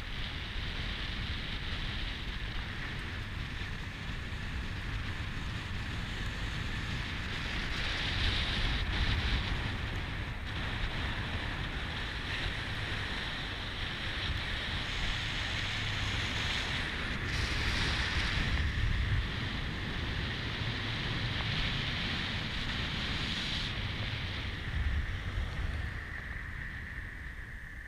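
Tyres roll on a road with a steady rushing noise.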